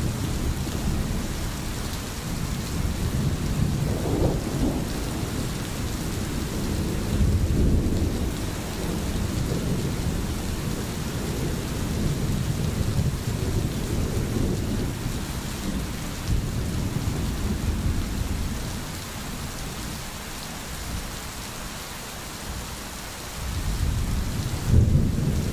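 A stream gurgles and flows over stones.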